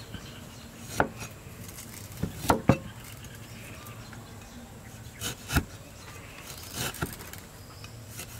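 A cleaver slices through limes on a board.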